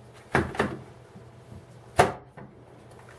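Metal tools clink as hands move them in a case.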